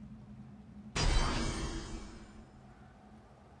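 A bright shimmering chime rings out and fades as an item is equipped.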